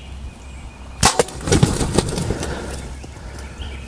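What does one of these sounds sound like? Turkey wings flap and beat loudly in a scuffle.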